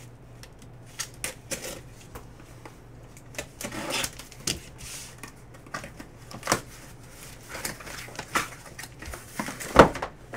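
Hands scrape and tear at a cardboard box.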